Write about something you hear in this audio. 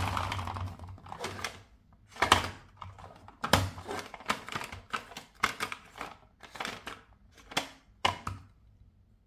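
Hands knock and clatter a plastic toy truck.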